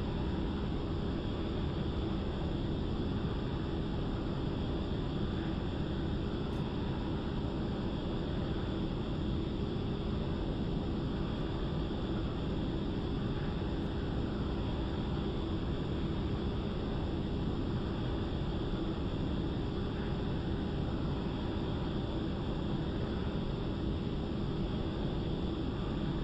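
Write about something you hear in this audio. Wind rushes steadily past the canopy.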